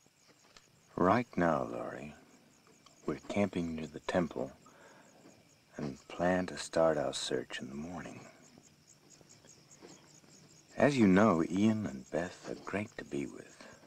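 A man speaks slowly and quietly, close by.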